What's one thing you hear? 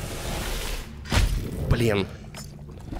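Electricity crackles and zaps in a sharp burst.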